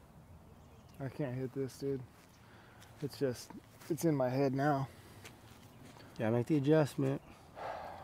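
A man talks casually nearby, outdoors.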